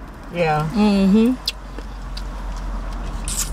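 A young woman bites into crispy fried chicken with a crunch.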